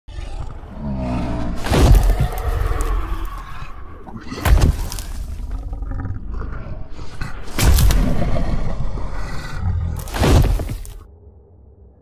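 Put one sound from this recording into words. A large beast roars and growls.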